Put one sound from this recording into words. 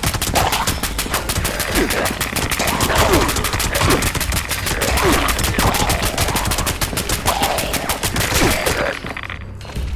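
Creatures snarl and shriek close by.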